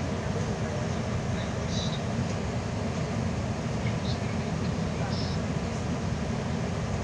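A bus engine rumbles steadily from inside the cab.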